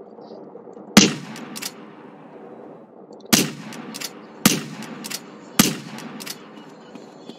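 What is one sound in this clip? Loud rifle shots crack and echo, one at a time.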